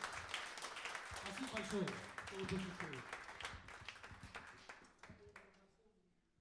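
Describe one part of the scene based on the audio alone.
A drummer taps out a quick beat on cymbals and drums.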